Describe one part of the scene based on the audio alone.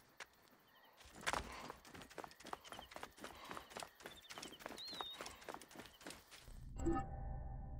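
Footsteps run on dry ground and grass.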